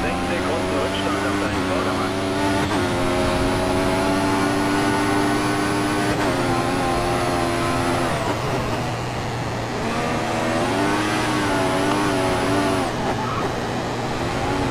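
A racing car engine screams at high revs, dropping in pitch with each gear change and rising again.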